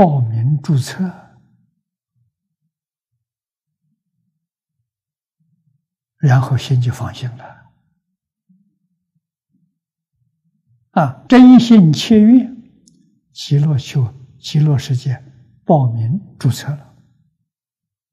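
An elderly man speaks calmly close to a microphone, in short phrases with long pauses.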